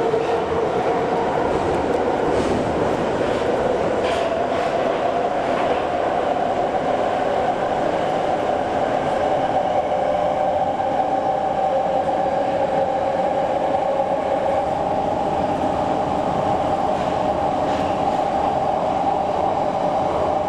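A subway train's wheels clatter and rattle on the rails.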